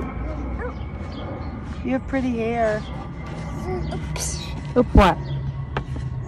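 A little girl babbles and squeals close by.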